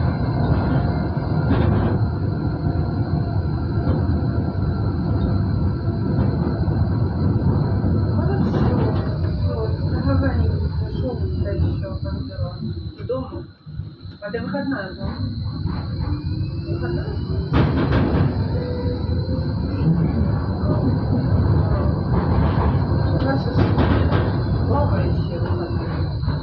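A tram rumbles and hums steadily while driving along its track.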